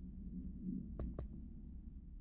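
Two quick menu clicks sound.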